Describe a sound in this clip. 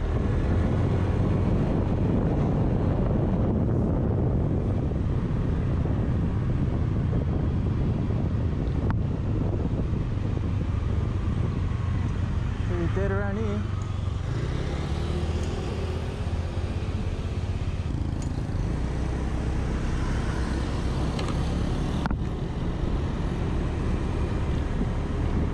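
A scooter engine hums steadily up close.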